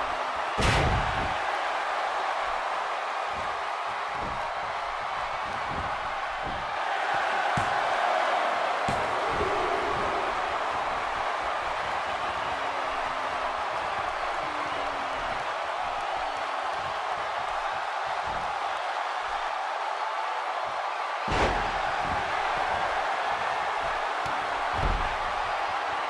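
Heavy bodies slam onto a wrestling ring mat with loud thuds.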